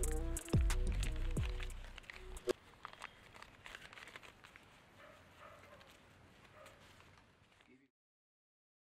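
Paper banknotes rustle softly as they are counted.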